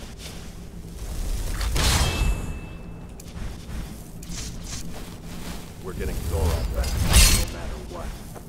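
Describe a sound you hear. A magic spell crackles and whooshes as it is cast.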